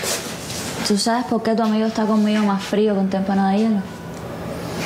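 A woman speaks with animation, close by.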